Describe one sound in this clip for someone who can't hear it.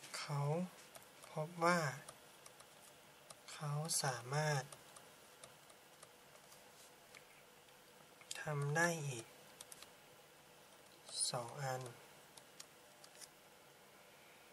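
A marker squeaks faintly as it writes on paper.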